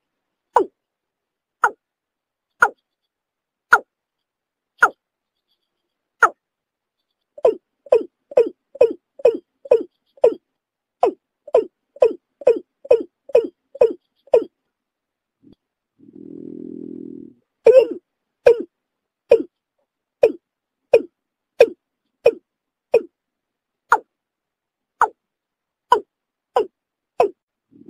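A bird calls with short, sharp notes repeated again and again.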